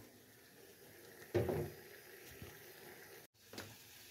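Water bubbles at a boil in a metal pot.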